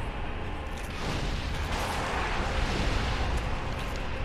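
A fiery blast roars.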